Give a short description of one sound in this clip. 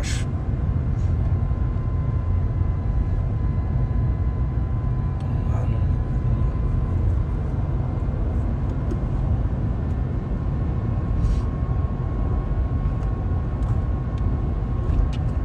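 A young man talks quietly close to the microphone.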